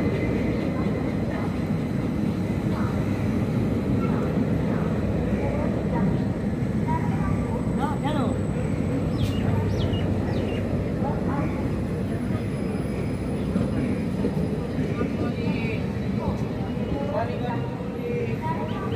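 A train rumbles steadily past close by.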